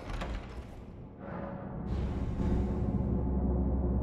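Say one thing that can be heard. A soft magical whoosh swells up.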